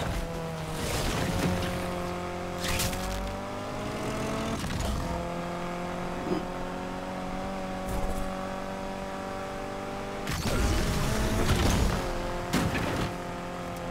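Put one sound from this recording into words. Bursts of rushing whooshes sweep past as a car boosts.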